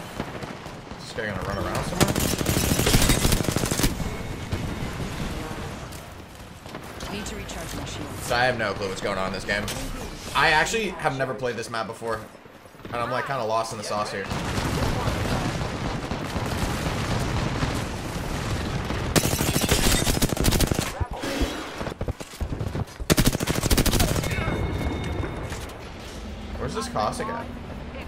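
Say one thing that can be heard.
Rapid bursts of gunfire crack loudly.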